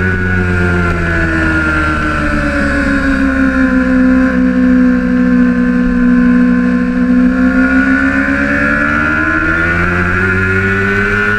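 A motorcycle engine roars close by, its pitch dropping through a bend and then climbing again.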